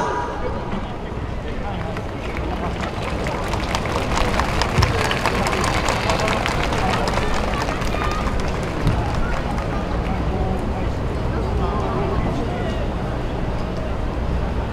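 Loud festival music plays over loudspeakers outdoors.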